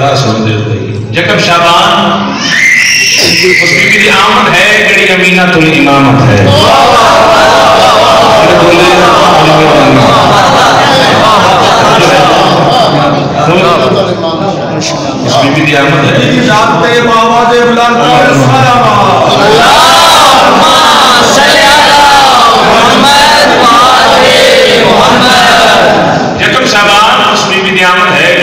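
A middle-aged man speaks passionately into a microphone, heard through loudspeakers in an echoing room.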